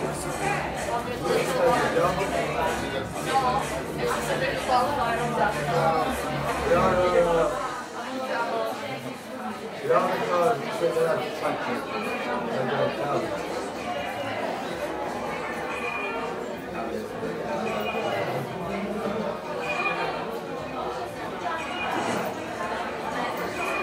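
A young man sings along loudly, close by.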